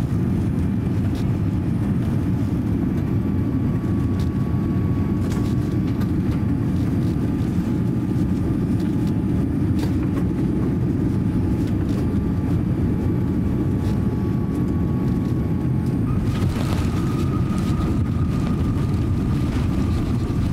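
A jet airliner's cabin roars steadily with a deep engine rumble.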